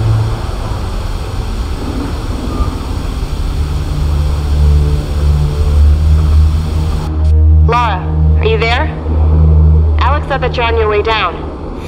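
A cable car rumbles along a cable with a low hum.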